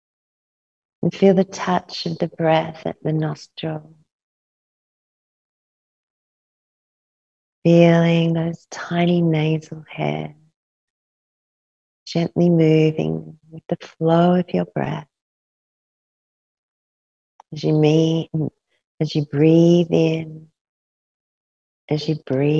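A young woman speaks calmly and slowly into a close microphone, with long pauses.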